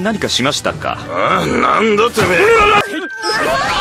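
A man asks a question in surprise.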